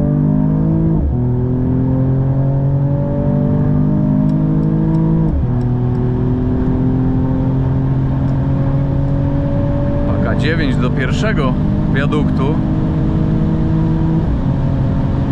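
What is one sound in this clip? A car engine briefly drops in pitch with each quick gear change.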